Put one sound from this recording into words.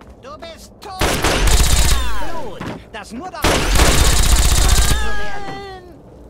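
A heavy gun fires long, rapid bursts at close range.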